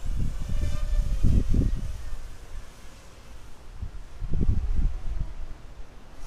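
Wind gusts rumble outdoors.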